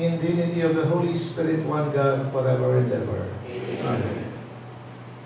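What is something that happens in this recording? A man chants into a microphone in a room with some echo.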